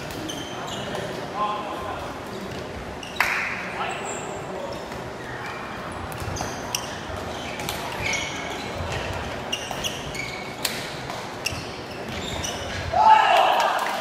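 Young men shout to each other across the hall.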